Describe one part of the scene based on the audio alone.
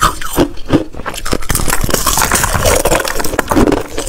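A woman bites into ice with a sharp crack.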